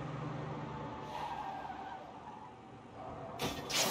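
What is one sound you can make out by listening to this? Tyres screech as a car drifts around a corner.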